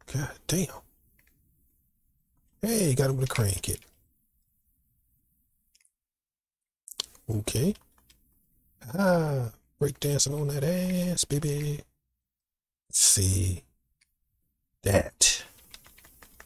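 A man talks with animation through a microphone, in short bursts.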